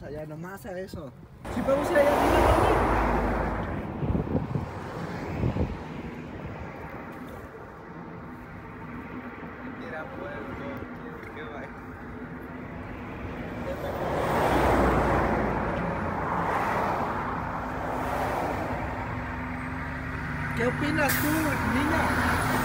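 A young man talks casually close by.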